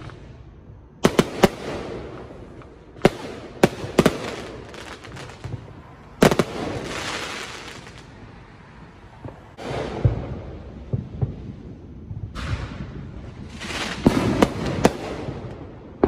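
Fireworks bang and crackle loudly outdoors, one burst after another.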